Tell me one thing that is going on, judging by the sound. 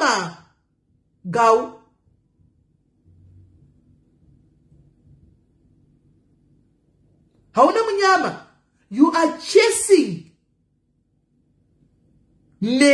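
A middle-aged woman speaks close up in short bursts, with pauses between.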